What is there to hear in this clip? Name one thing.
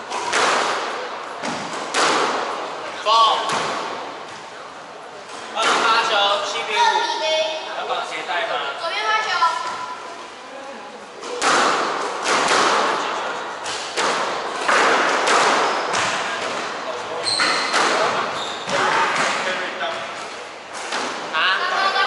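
A squash ball smacks against the walls in a hard, echoing court.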